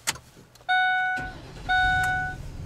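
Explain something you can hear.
An engine cranks and starts.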